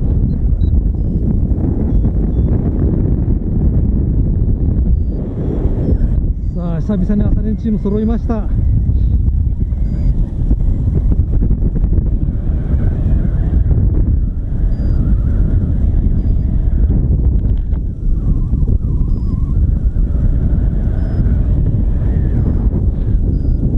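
Wind buffets loudly and steadily in flight.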